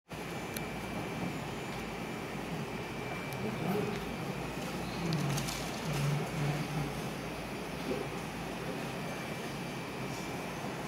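A man speaks through a microphone and loudspeakers in a large room, heard from a distance.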